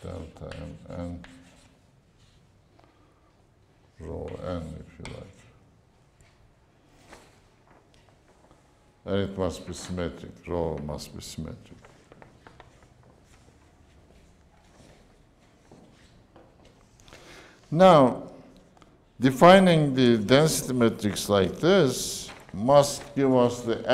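An elderly man lectures calmly, with pauses.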